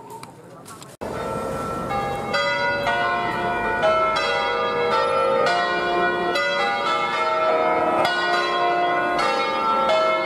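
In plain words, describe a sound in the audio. Large church bells ring out loudly in a clanging peal.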